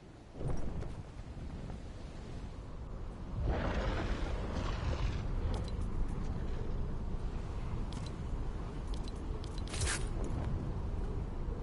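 Wind rushes past steadily during a fast glide.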